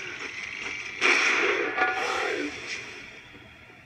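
Gunfire rattles in bursts from a video game.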